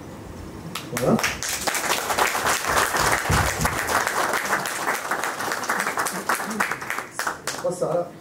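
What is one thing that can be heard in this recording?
Hands clap in applause.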